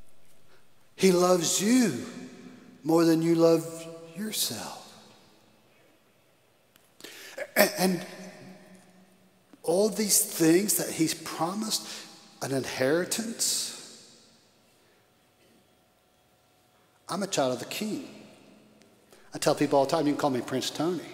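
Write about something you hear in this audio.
An elderly man speaks with animation through a microphone, with long pauses, in a reverberant hall.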